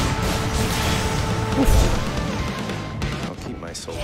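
Fantasy battle sound effects crash and boom loudly.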